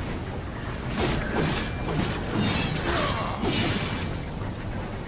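A sword slashes and strikes with sharp, ringing hits.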